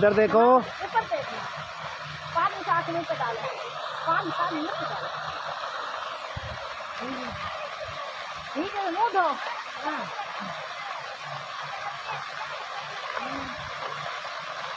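Water splashes and pours steadily down onto the ground.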